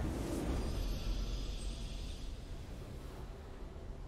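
A triumphant victory fanfare swells.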